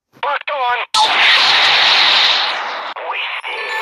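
An explosion booms with a roar.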